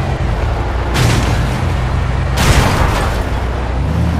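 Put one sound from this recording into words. A vehicle crashes and bounces heavily on rocks.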